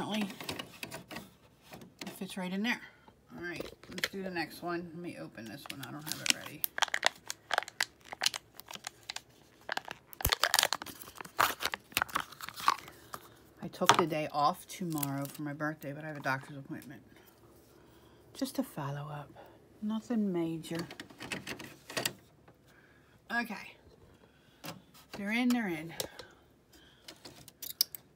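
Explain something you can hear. A plastic printhead latch clicks into place.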